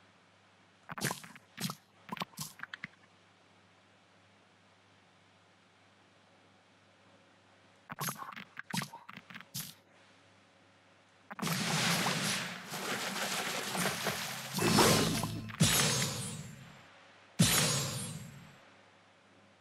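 Bright game chimes and sparkles play as candies are matched.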